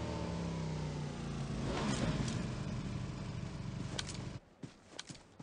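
A motorbike engine idles loudly nearby.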